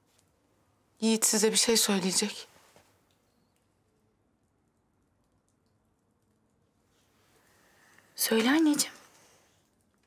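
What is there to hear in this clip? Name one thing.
A young woman speaks in a tense, low voice close by.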